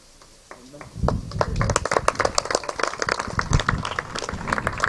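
A small group of people applauds.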